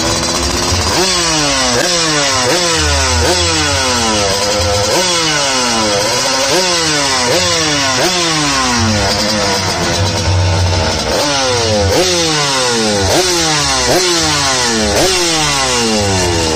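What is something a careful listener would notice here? A motorcycle engine revs up sharply and drops back, over and over.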